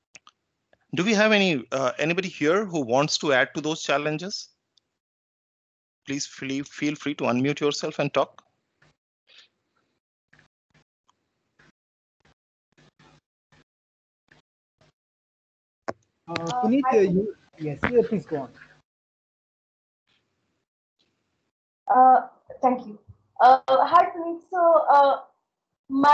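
A man speaks calmly over an online call, pausing now and then.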